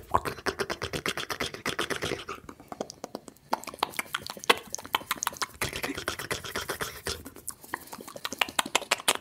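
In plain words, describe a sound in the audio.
Fingers tap and rustle very close to the microphone.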